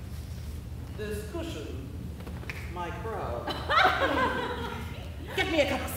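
A woman speaks loudly and with animation in a large echoing hall.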